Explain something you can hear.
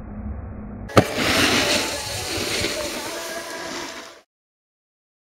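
A snowboard scrapes across hard snow.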